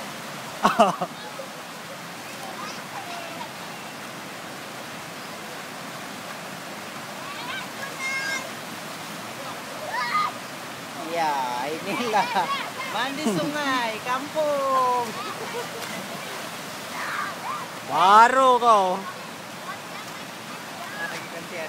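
Water rushes steadily over a low weir.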